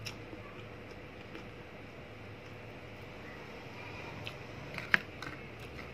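A young woman chews food softly, close by.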